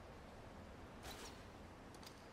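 A grappling claw fires with a sharp snap.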